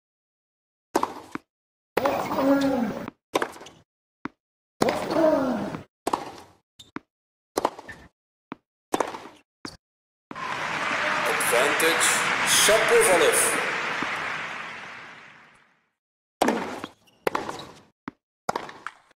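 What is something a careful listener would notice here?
A tennis ball is struck by rackets, with sharp pops back and forth.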